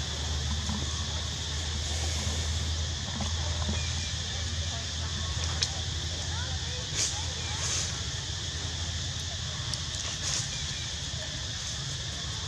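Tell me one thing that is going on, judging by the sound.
A monkey chews and munches on food.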